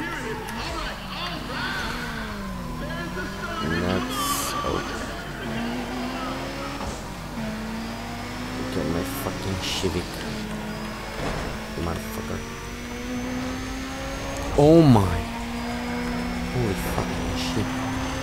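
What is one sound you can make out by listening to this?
Other race cars roar past.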